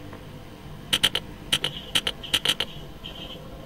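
Keypad buttons click in a quick series.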